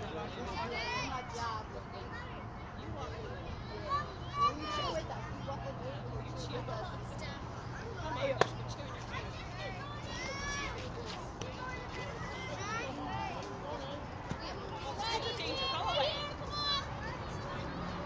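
Young children shout and cheer at a distance outdoors.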